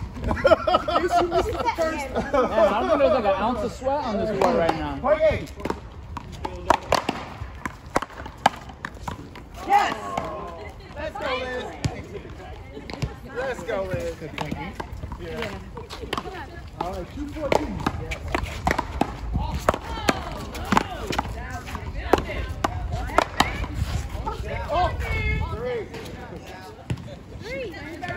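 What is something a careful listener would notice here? A man and a woman talk and call out nearby.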